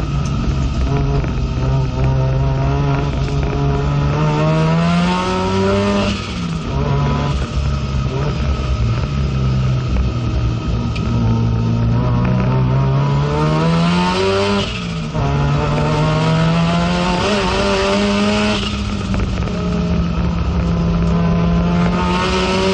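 A race car engine roars loudly from inside the cabin, rising in pitch as it revs up and dropping sharply at each gear change.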